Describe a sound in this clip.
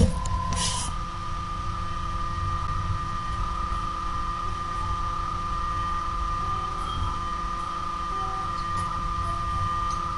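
An electric guitar plays a quick melody.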